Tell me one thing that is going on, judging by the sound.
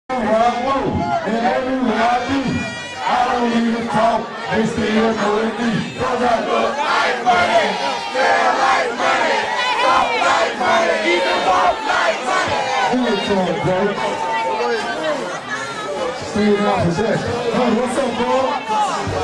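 A crowd of young men talks and shouts excitedly close by.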